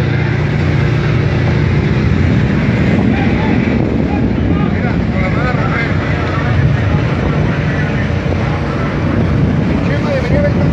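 Strong wind rumbles and buffets across open water.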